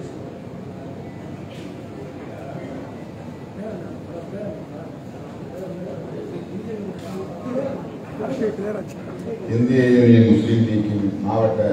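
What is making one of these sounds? A middle-aged man speaks steadily into a microphone over a loudspeaker in an echoing hall.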